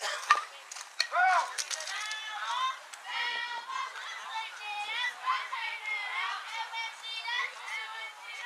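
Young girls cheer and shout excitedly from nearby.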